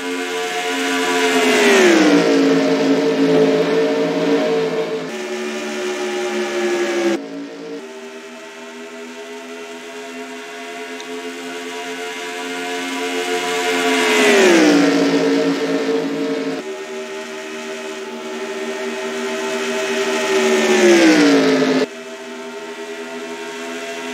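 Racing car engines roar steadily, with the pitch dropping sharply as cars pass by.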